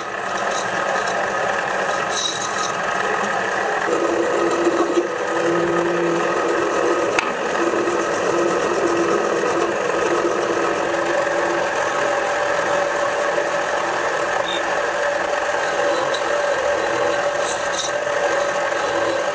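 A cutting tool scrapes against spinning metal.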